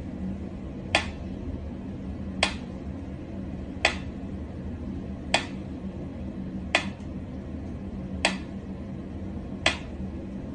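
A metronome ticks slowly and steadily.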